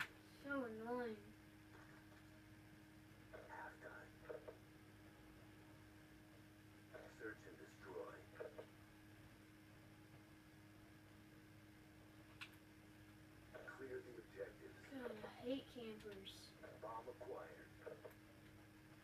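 A television plays in the room.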